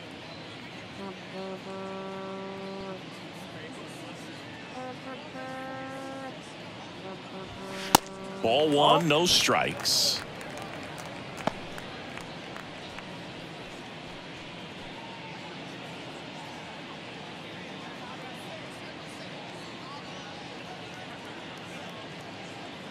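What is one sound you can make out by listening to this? A stadium crowd murmurs steadily in the background.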